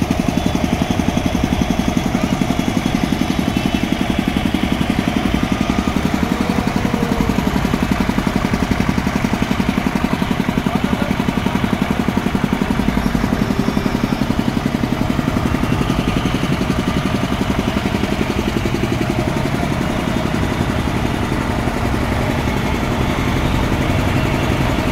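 A truck engine rumbles steadily close by.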